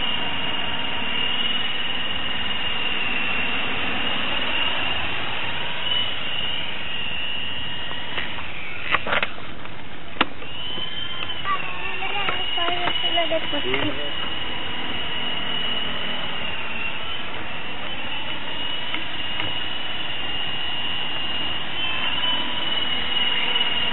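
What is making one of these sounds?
A small electric motor whines steadily close by.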